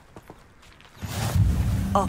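A magical shimmer chimes softly.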